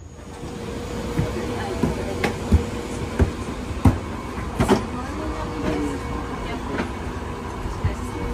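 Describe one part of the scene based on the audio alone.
Footsteps thud on carpeted stairs.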